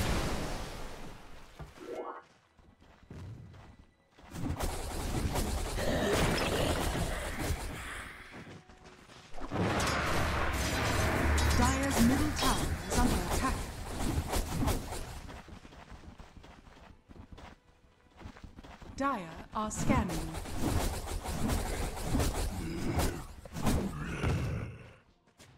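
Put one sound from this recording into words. Game battle effects clash and burst.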